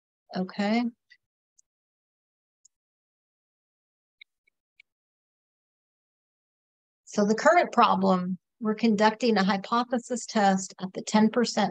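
A woman talks calmly into a microphone, close by.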